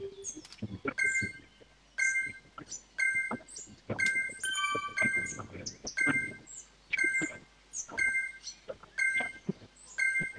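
Short electronic beeps sound about once a second.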